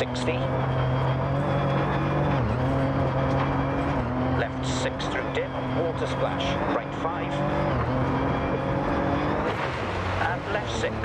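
A rally car engine roars steadily, its pitch dipping briefly as gears shift.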